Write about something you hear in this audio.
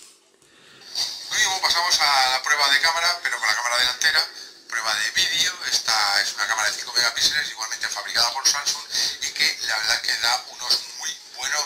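A middle-aged man talks calmly, heard through a small phone speaker.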